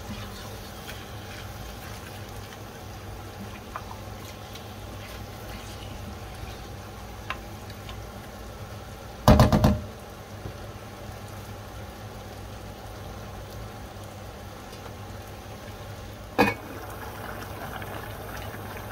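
Meat sizzles in a pot.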